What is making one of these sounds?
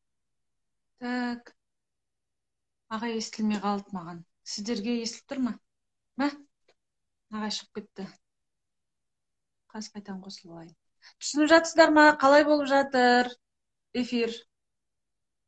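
A woman speaks calmly and close up, pausing often.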